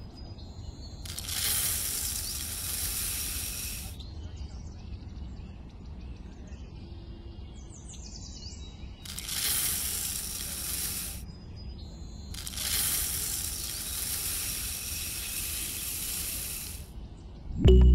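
Grain pours and rattles into a plastic tray in loud rushing bursts.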